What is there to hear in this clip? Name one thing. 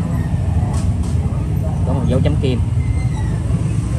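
A metal lighter lid clicks.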